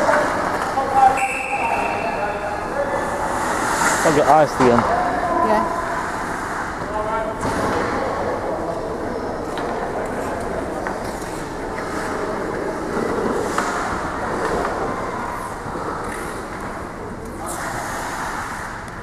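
Ice skates scrape and swish across an ice rink in a large echoing arena.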